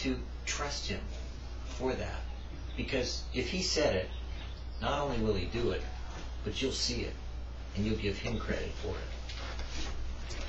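A middle-aged man talks calmly and expressively close by.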